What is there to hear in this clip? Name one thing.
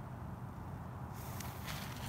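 A firework fuse fizzes and sputters.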